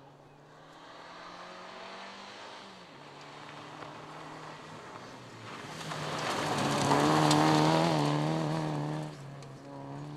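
Gravel crunches and sprays under a car's tyres.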